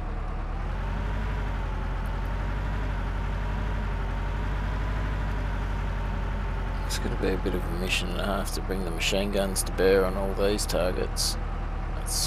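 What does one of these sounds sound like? A tank engine rumbles and clanks steadily as the tank rolls along.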